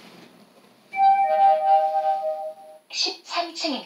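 An elevator chime rings on arrival.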